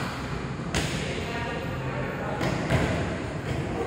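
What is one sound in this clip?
A volleyball is struck with sharp slaps in an echoing hall.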